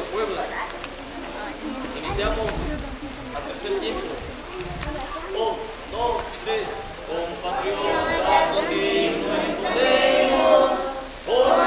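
A group of men and women sing together in unison, close by.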